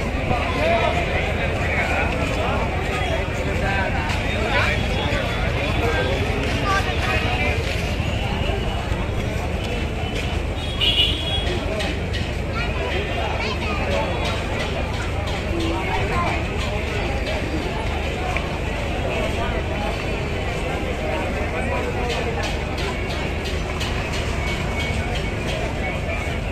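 Loud music with a deep thumping beat plays over loudspeakers.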